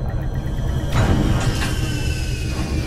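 An electronic chime sounds as a menu opens.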